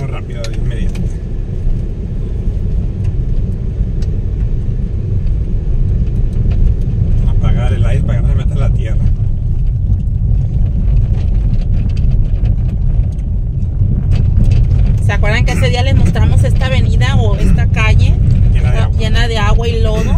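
A car engine hums steadily with a low rumble.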